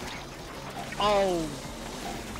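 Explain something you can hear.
A short bright electronic burst rings out.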